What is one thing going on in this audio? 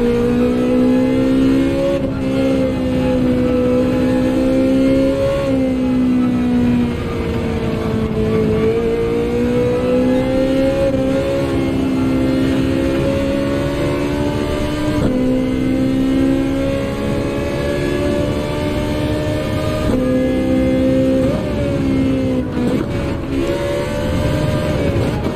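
A racing car engine roars at high revs, dropping in pitch at each gear change.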